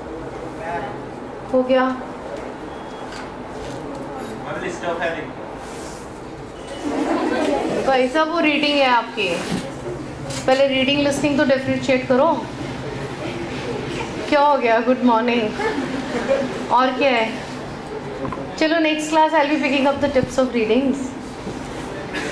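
A middle-aged woman speaks into a close microphone with animation.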